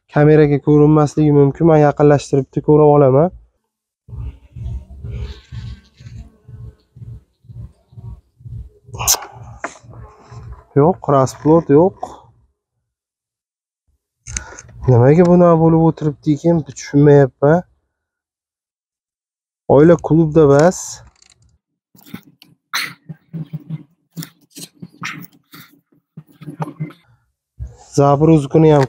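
A man speaks calmly and close by, explaining.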